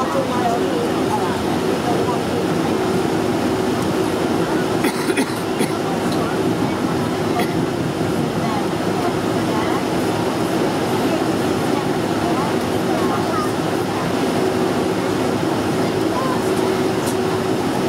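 Jet engines hum steadily inside an aircraft cabin as the plane taxis.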